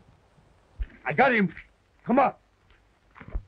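Men call out to each other.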